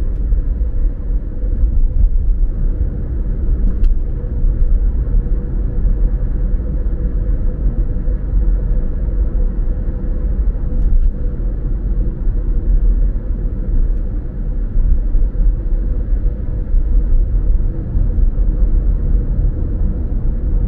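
Tyres roll on the road with a low, steady rumble.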